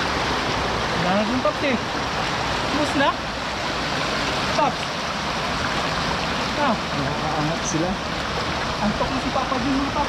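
A young man talks.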